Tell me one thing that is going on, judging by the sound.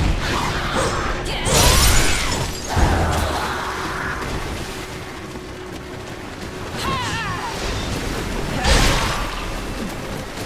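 Magic blasts burst with a whooshing roar.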